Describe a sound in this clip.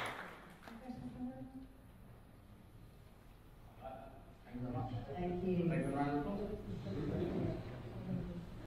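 A man speaks through a microphone in a large echoing hall, pausing between phrases.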